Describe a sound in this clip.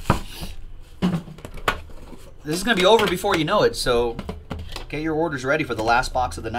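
A cardboard lid scrapes and taps as a box is opened.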